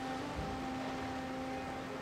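Water splashes as a character swims.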